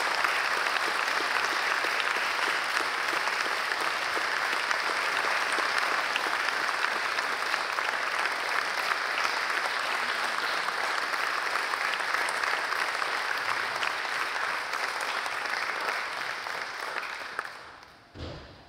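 An audience applauds loudly in a large hall, then the applause fades.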